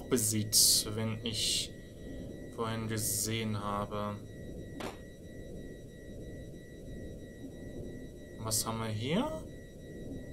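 Retro video game sound effects chirp and blip in short bursts.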